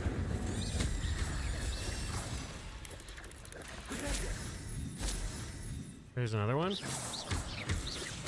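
Magic spells crackle and zap.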